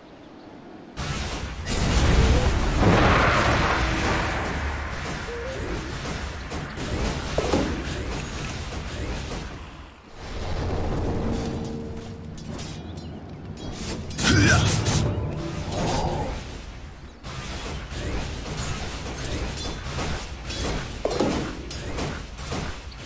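Spell blasts and weapon strikes clash and burst in a fantasy battle.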